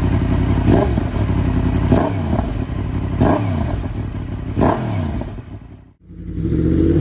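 A motorcycle engine idles loudly and revs in short, sharp bursts.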